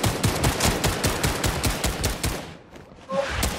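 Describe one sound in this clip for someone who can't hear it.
Footsteps run quickly over wooden boards.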